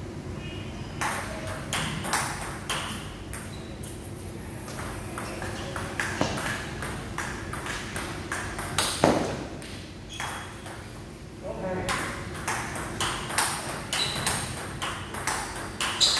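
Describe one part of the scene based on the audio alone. A ping-pong ball clicks back and forth off paddles and a table in a rally.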